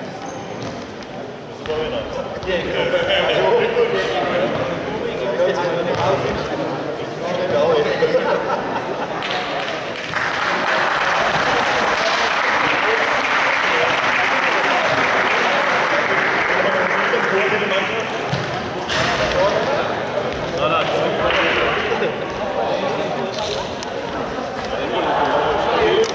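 Several men talk nearby in a large echoing hall.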